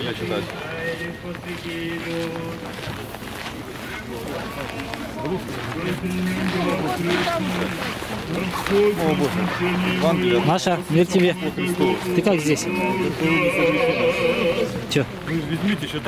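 A crowd of people chatter in the background outdoors.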